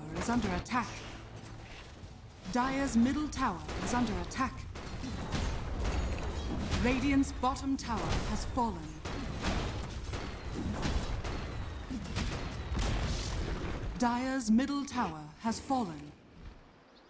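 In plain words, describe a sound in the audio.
Spell blasts and weapon clashes crackle and thud in a busy fight.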